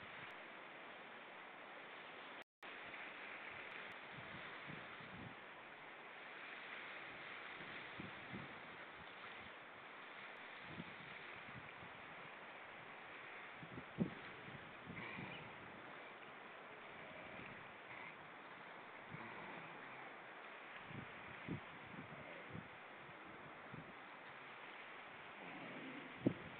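Small waves lap steadily against a stony shore.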